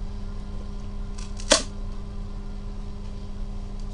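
A box lid is lifted open.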